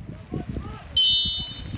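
A referee blows a short whistle blast.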